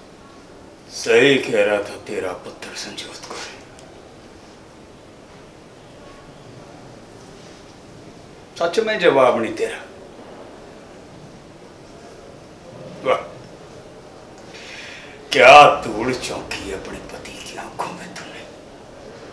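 An elderly man speaks in short bursts.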